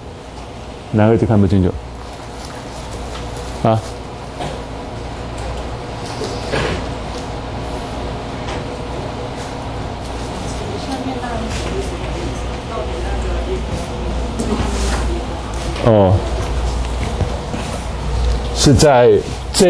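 A man speaks through a microphone in short bursts, with pauses between.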